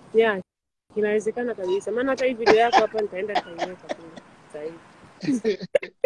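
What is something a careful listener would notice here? A man laughs loudly over an online call.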